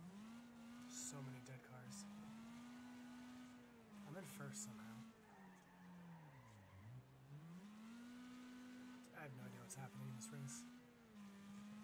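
Tyres skid and screech on the track.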